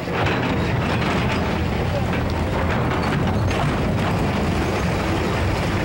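An excavator engine rumbles.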